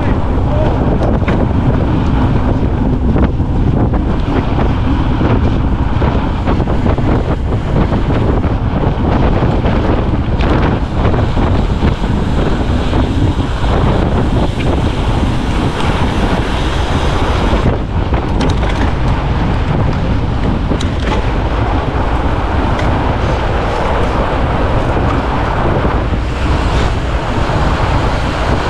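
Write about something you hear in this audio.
Wind rushes loudly past a microphone outdoors.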